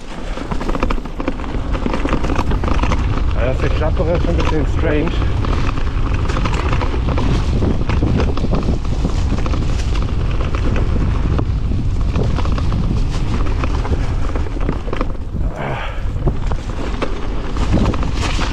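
Bicycle tyres rumble and crunch over leaves and dirt.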